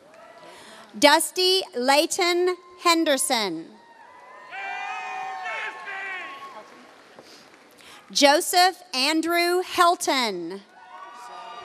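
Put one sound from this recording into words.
A man reads out names loudly through a loudspeaker in a large echoing hall.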